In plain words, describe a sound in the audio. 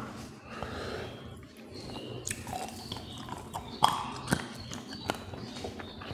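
A man chews food wetly and noisily close to a microphone.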